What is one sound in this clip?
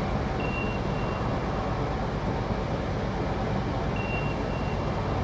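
A high electronic beep sounds in short pairs.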